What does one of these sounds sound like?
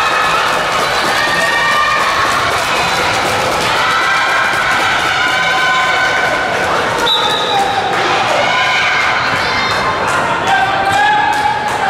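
A crowd of young spectators shouts and cheers in a large echoing hall.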